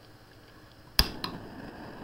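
A gas stove lights with a sharp click.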